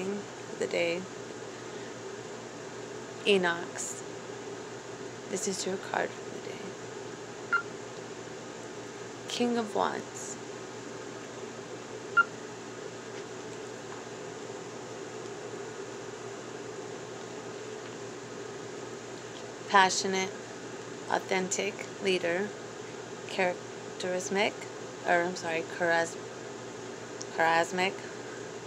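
A woman talks close to a phone microphone, in bursts with pauses.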